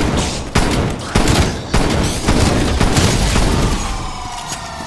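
Rapid gunfire blasts loudly.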